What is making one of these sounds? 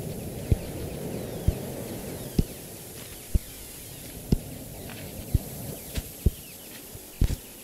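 An axe chops into a tree trunk with regular thuds.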